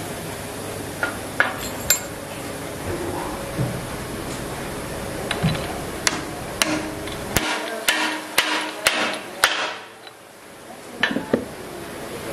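Metal parts clink and knock together as they are fitted.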